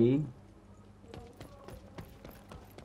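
Footsteps run quickly over a dirt path.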